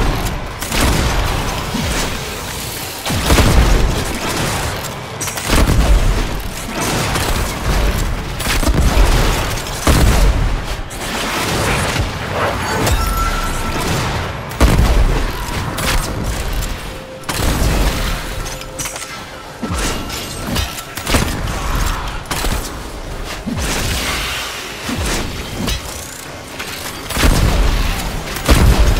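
Explosions boom heavily again and again.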